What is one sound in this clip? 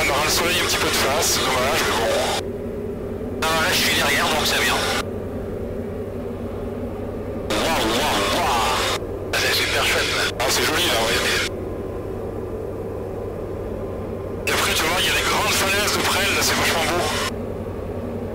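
A man talks with animation over a headset intercom.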